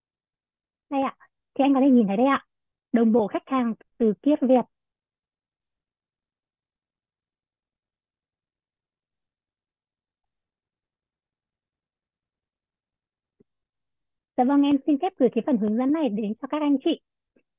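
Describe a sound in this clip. A woman speaks calmly over an online call, in short bursts.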